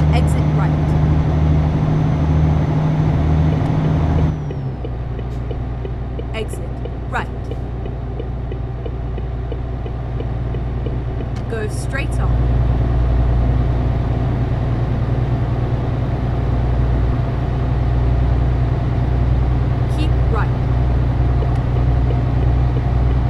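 A truck engine hums steadily at highway speed.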